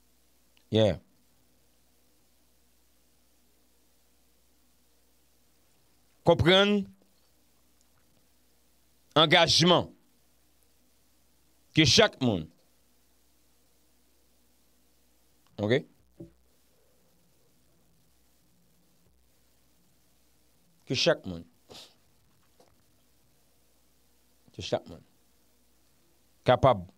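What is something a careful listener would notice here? A young man speaks calmly into a close microphone, in short bursts with long pauses.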